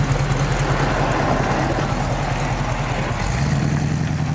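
A powerful car engine rumbles at idle.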